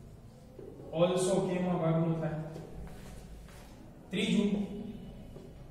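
A man speaks calmly nearby, as if lecturing.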